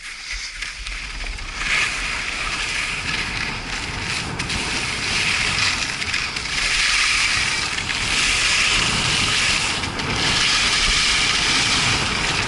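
Skis scrape and hiss over hard snow.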